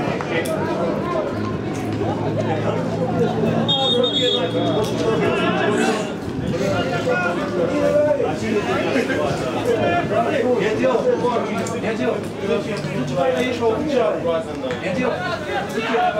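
A crowd chants and cheers in an open stadium.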